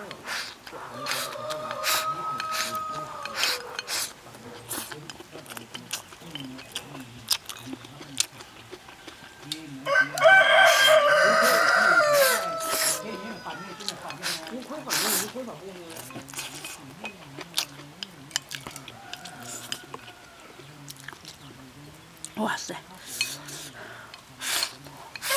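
A young woman chews food with wet smacking sounds.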